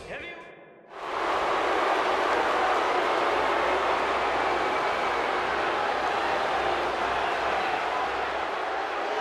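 A large crowd cheers loudly and steadily in a big arena.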